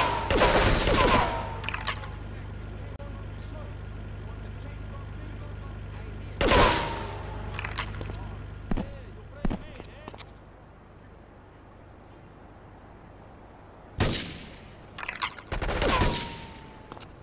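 A sniper rifle fires single shots.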